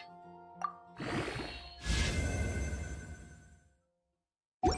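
A bright magical chime swells, shimmers and fades away.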